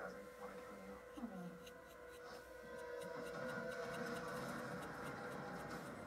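A stiff brush dabs and scrubs lightly against a small model.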